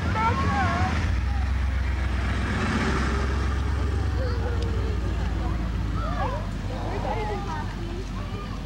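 A pickup truck drives slowly past and fades away.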